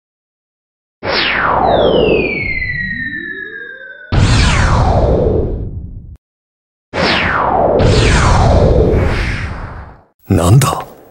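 Loud whooshes rush past one after another, each falling away quickly.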